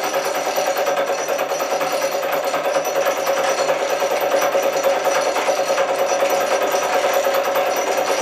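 A spinning handle rattles.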